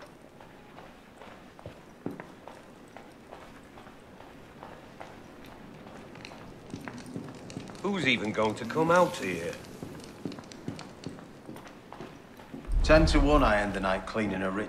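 Footsteps tap steadily across a hard wooden floor.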